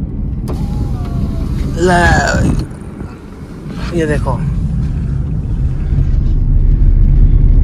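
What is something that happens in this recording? Tyres rumble on the road as a car drives.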